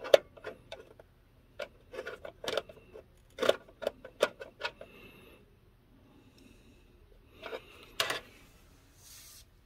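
Small plastic parts click and tap under a hand's fingers.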